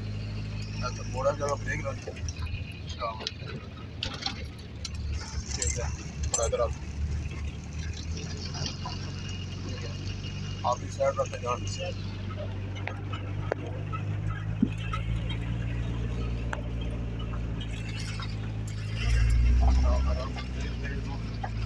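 A man talks with animation nearby inside the car.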